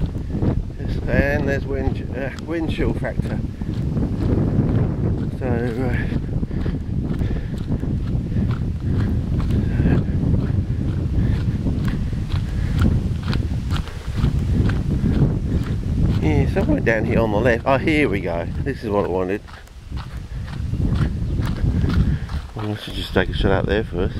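Footsteps crunch on a gravel path.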